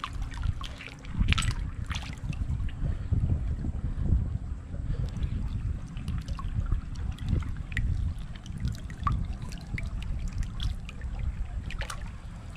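A shallow stream splashes and gurgles over stones close by.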